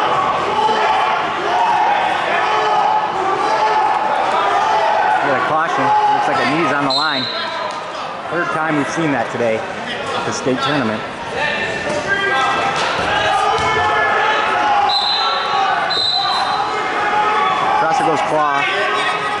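A crowd chatters and shouts in a large echoing gym.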